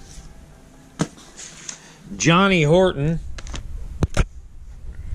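Record sleeves knock softly against each other.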